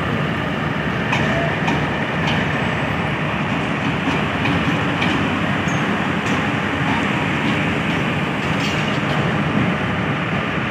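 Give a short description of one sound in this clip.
Steel wheels clank and squeal on the rails as a locomotive rolls past.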